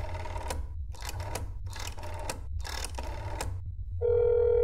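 A rotary phone dial whirs and clicks as it spins back.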